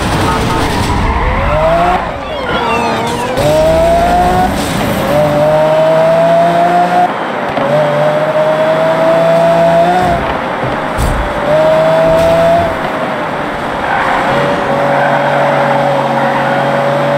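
A sports car engine roars, climbing in pitch and dropping with each gear change.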